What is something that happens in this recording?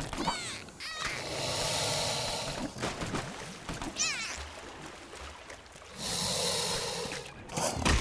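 Water splashes as a small figure wades through it.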